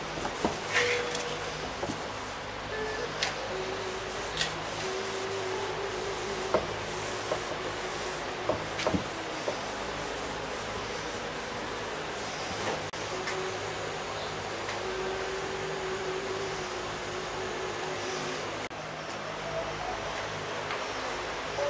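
A cloth rubs and squeaks across a plastic car bumper.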